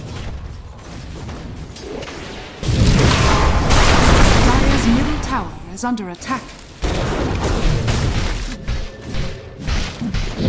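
Spell effects whoosh and crackle during a fight.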